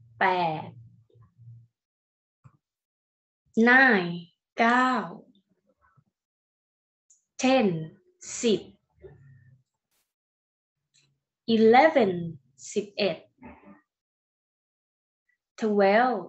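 A young woman speaks slowly and clearly into a microphone, pausing between words.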